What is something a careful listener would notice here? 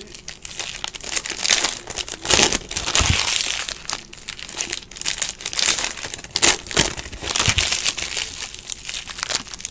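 Plastic card wrappers crinkle and rustle close by.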